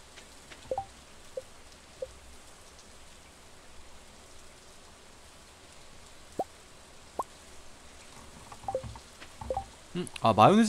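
Short soft blips sound as menu items are selected.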